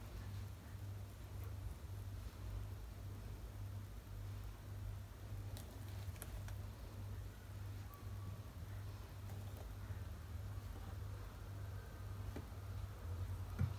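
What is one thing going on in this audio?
A spoon scrapes softly through flour.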